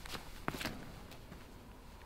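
Footsteps scuff on dry grass during a quick run-up.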